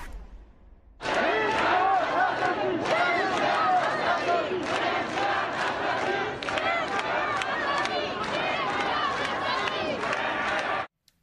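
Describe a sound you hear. A large crowd of men and women chants loudly and rhythmically outdoors.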